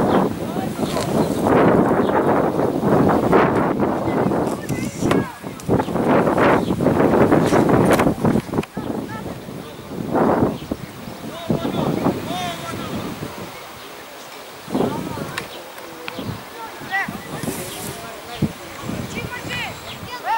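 Footballers shout to each other in the distance across an open field.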